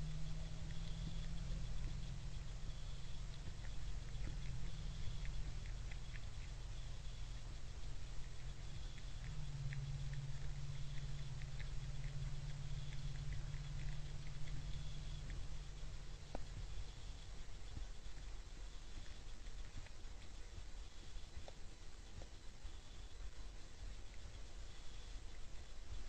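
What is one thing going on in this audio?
A deer crunches grain as it feeds close by.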